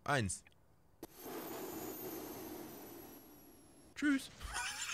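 A small rocket launches with a rushing roar that slowly fades.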